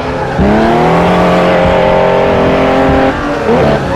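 Another racing car roars past close by.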